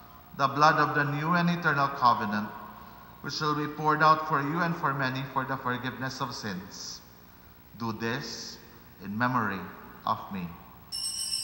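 A middle-aged man chants slowly into a microphone in a large echoing hall.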